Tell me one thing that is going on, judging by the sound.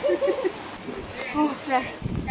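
A young woman speaks up close.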